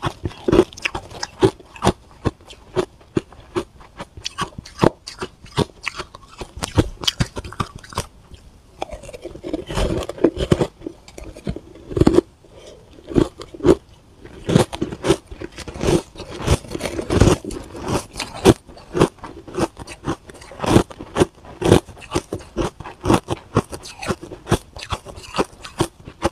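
A metal spoon scrapes and clinks against shaved ice.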